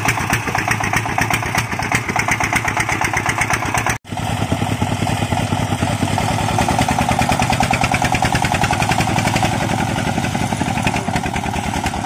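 A single-cylinder tractor engine chugs loudly and rapidly close by.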